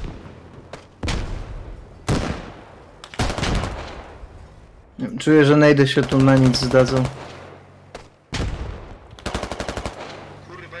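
Rifle shots crack loudly and echo away, one after another.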